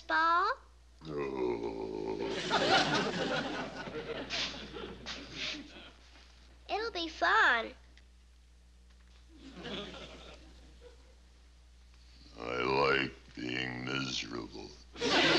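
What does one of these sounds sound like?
A man speaks in a very deep, slow voice.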